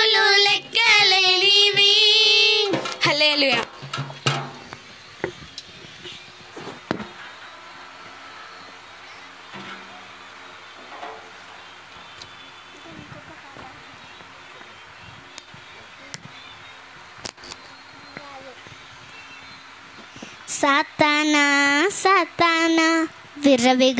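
Young girls sing through microphones, loud and close.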